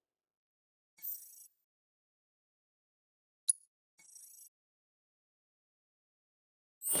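A soft menu chime beeps a few times.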